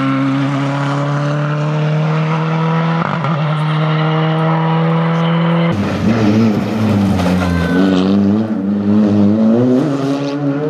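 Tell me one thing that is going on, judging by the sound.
A rally car engine roars loudly as it speeds past, revving up and down through the gears.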